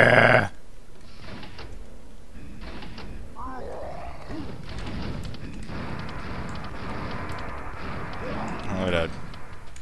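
A gun fires repeatedly.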